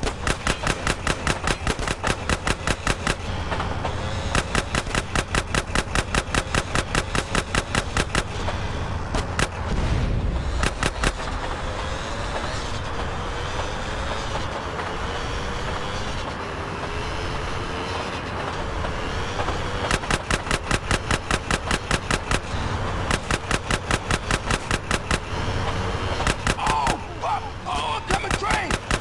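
Train wheels clatter rhythmically over rail joints close by.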